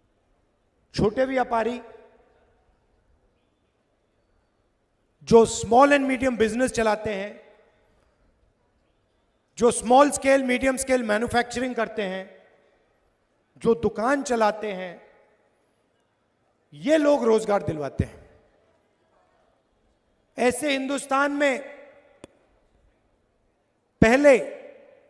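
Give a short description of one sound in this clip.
A man speaks forcefully into a microphone, heard through loudspeakers, in short bursts with pauses.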